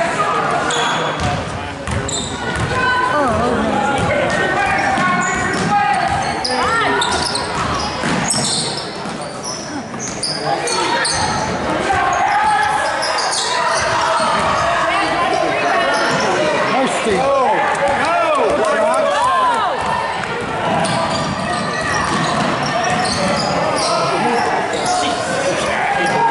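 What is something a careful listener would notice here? A crowd of spectators chatters and cheers nearby.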